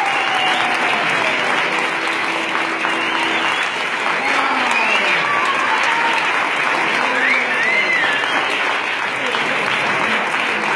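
An accordion plays a tune in a large echoing hall.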